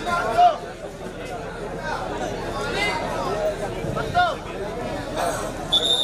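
A crowd of men chatters and shouts nearby outdoors.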